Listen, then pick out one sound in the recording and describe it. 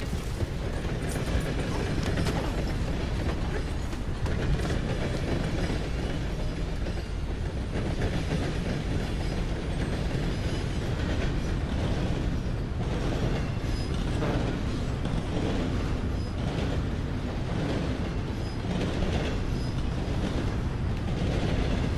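A freight train rumbles and clatters steadily along the tracks.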